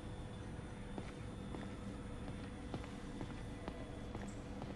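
Footsteps tap faintly on a hard floor.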